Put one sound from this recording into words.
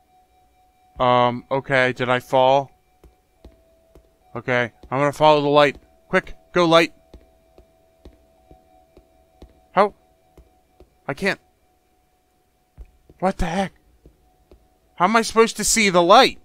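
A man talks with animation into a close microphone, in bursts.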